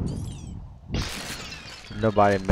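Glass shatters with a sharp crash.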